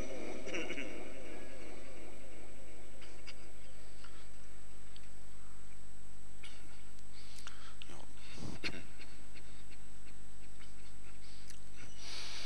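A middle-aged man chants in a drawn-out voice through a microphone, with pauses between phrases.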